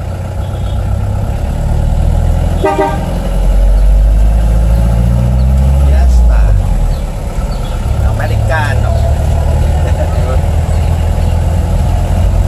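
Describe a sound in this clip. A 1955 Chevrolet's engine drones, heard from inside the cabin as the car drives along.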